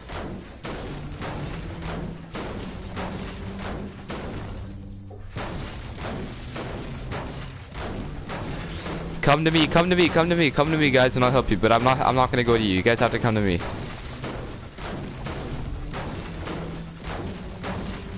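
A pickaxe strikes wood with repeated hollow thuds.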